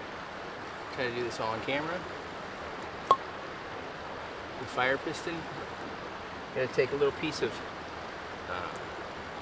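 A man speaks calmly close by, in short phrases.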